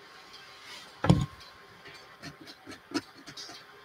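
A pencil scratches and taps on a canvas.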